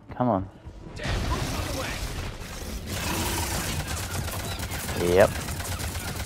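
Gunfire and explosions crackle loudly in a fight.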